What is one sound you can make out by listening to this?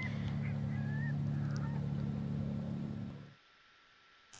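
A forklift engine idles with a low, steady rumble.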